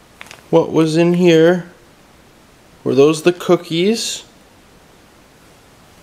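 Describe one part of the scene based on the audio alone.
A plastic sheet crinkles and rustles.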